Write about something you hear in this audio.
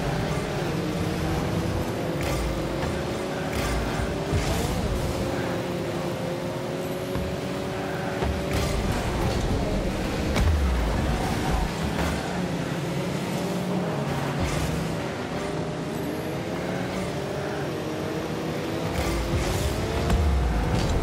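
A car engine hums steadily, rising and falling in pitch as it speeds up and slows down.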